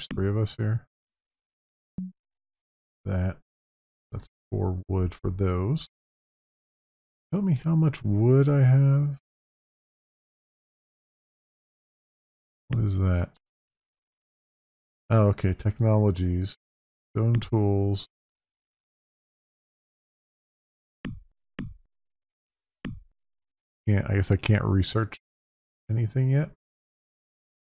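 A man talks casually into a close microphone, in short bursts.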